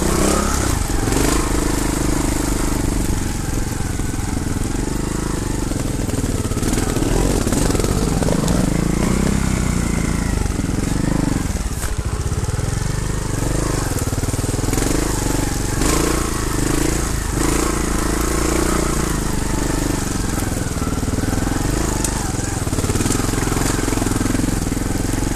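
A motorcycle engine revs and putters close by, rising and falling.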